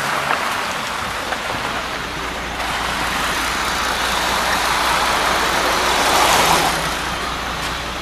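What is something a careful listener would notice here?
Traffic hisses past on a wet road.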